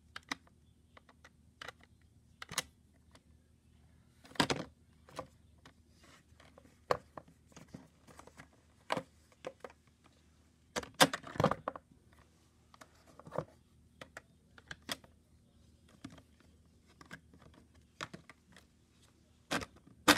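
Plastic toy parts click and rattle as a hand handles them close by.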